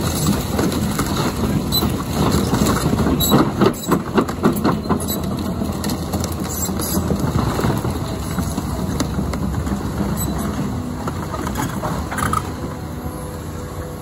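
Excavator tracks clank and squeal as the machine moves.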